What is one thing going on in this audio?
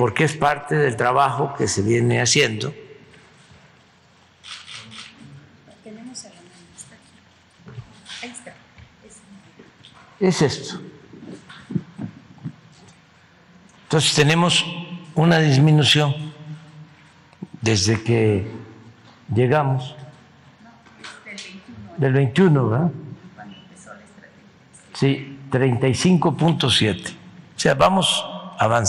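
An elderly man speaks calmly into a microphone in a large echoing hall, with pauses.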